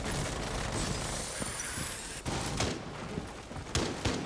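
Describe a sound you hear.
A rope rattles and hisses during a climb up a wall.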